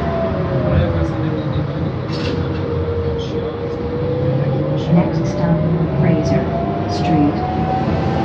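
Loose panels inside a bus rattle and click now and then.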